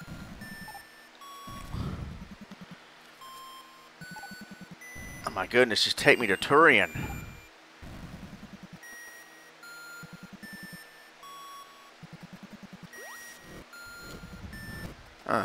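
Retro video game music plays in short electronic beeps and tones.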